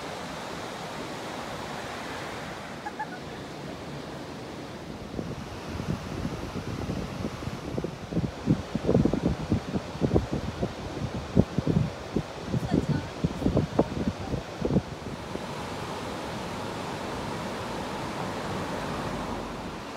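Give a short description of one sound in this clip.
Water rushes steadily over a low weir.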